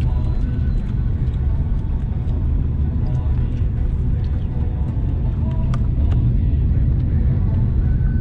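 Tyres rumble over a rough road surface.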